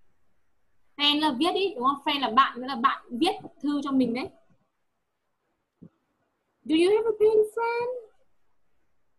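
A young woman speaks through an online call, explaining in short bursts.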